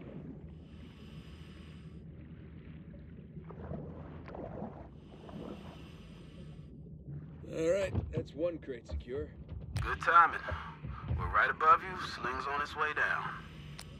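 A diver breathes loudly through a regulator.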